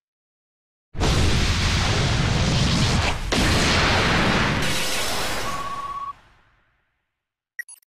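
A mobile game plays a loud rushing burst of summon sound effects that fades away.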